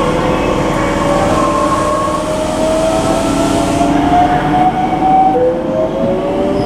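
A train's motor whines, rising slowly in pitch as it speeds up.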